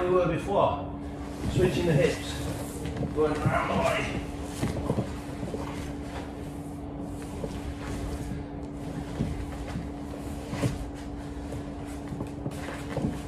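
Stiff fabric rustles as a man moves.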